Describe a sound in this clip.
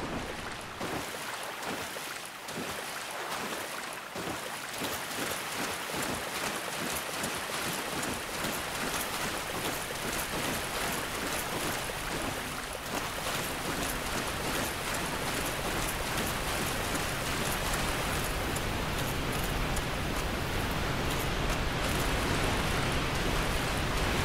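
A waterfall roars steadily, growing louder.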